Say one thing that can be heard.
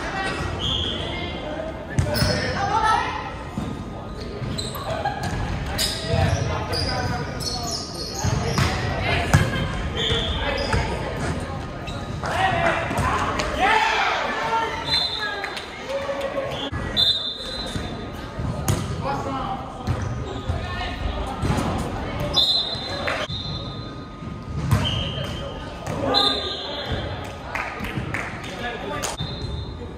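Young players call out and talk.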